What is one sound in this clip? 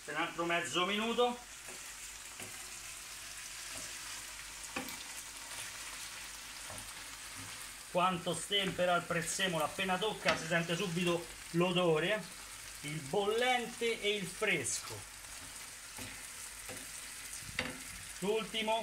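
A wooden spoon stirs and scrapes food in a frying pan.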